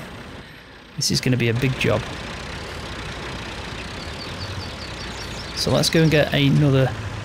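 A tractor engine rumbles.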